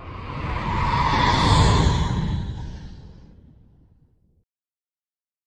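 A spacecraft engine roars past and fades away.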